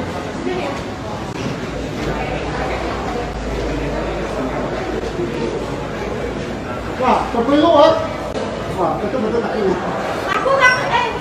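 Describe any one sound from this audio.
People chatter and murmur nearby.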